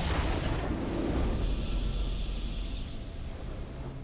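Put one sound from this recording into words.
A victory fanfare plays.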